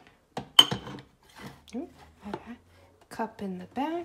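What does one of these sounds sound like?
A ceramic mug clunks down onto a metal drip tray.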